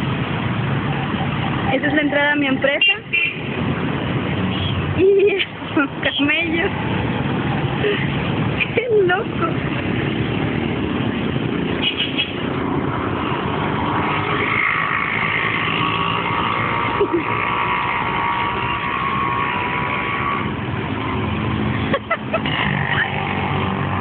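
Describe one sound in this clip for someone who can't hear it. City traffic rumbles steadily close by.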